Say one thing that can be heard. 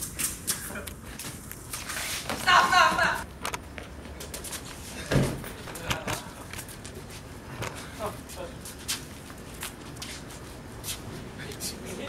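Feet shuffle and scuff on concrete during a mock fight.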